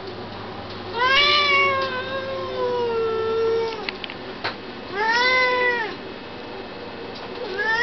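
A cat meows loudly in long, drawn-out cries.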